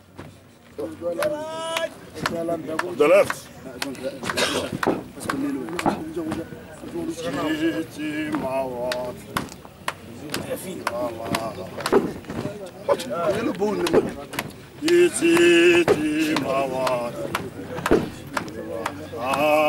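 A man preaches loudly and with animation through a microphone and loudspeaker, outdoors.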